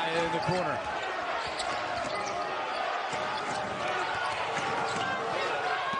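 A large indoor crowd murmurs in an echoing arena.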